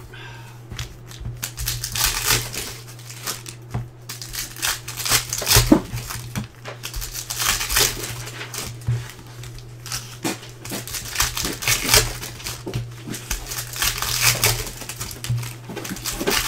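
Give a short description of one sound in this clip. Foil wrapping crinkles and tears as hands open a pack.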